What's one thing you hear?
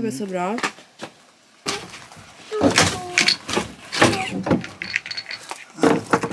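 Wood knocks and creaks as a man pries boards loose with a hammer.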